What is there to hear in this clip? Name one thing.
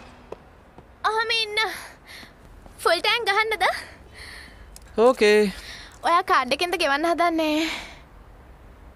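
A young woman speaks.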